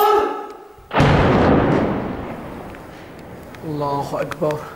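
A distant explosion booms and rumbles away.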